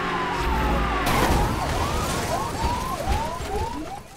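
A car crashes with a loud metallic smash.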